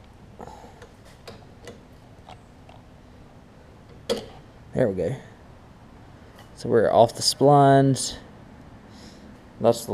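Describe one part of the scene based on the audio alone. A small metal lever on a mower engine clicks and rattles as it is moved by hand.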